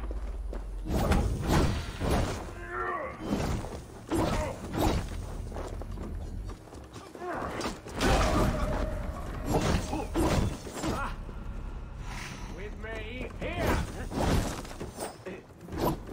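Blades clash and thud in a fierce fight.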